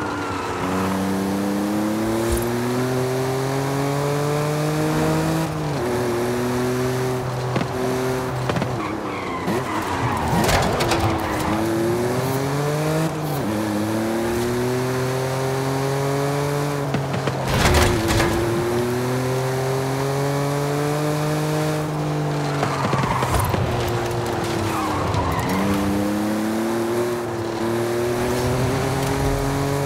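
A sports car engine hums and revs up and down through gear changes.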